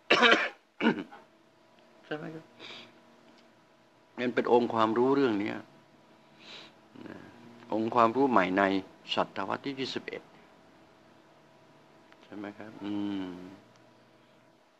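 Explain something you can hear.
An elderly man speaks calmly into a close microphone, in bursts with pauses.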